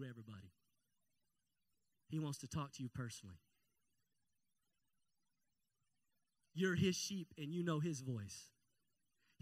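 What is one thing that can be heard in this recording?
A man speaks with animation into a microphone over loudspeakers, pausing between phrases.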